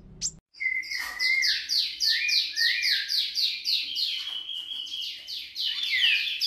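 A small bird sings a fast, repeated run of high, sweeping chirps.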